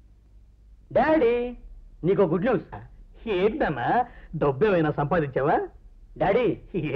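A middle-aged man speaks with animation.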